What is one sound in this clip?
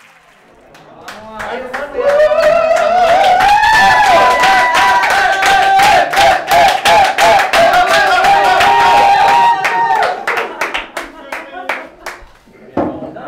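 People clap their hands in a fast rhythm.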